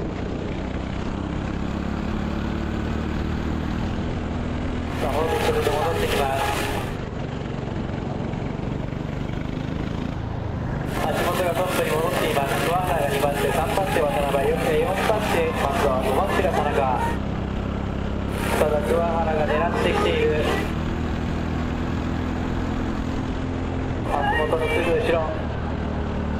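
A kart engine drones loudly, rising and falling in pitch as it speeds up and slows down.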